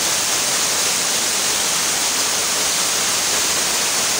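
A waterfall splashes steadily onto rocks nearby.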